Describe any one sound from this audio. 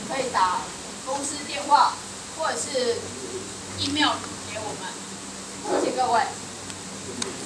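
A young woman speaks with animation.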